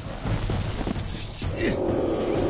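A sword slashes and strikes an enemy.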